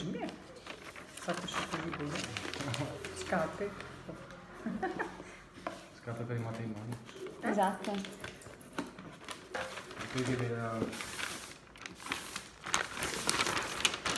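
Wrapping paper rustles and crinkles close by.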